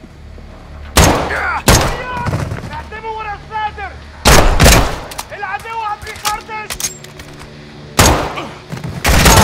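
Gunshots ring out in loud bursts, echoing in a hard corridor.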